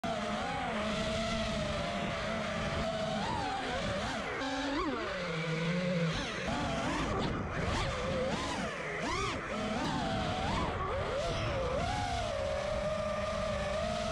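A small drone's motors whine loudly, rising and falling in pitch.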